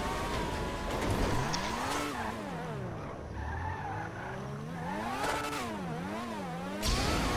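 A racing car engine revs up and down as gears shift.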